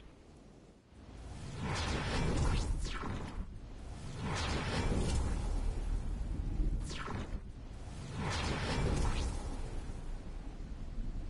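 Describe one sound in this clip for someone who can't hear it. Wind rushes loudly past in strong gusts.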